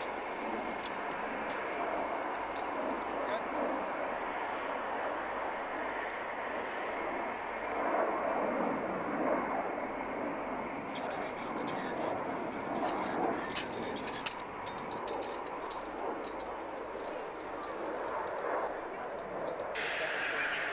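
A twin-engine jet fighter roars overhead.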